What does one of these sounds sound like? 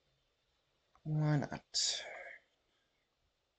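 A young man speaks briefly.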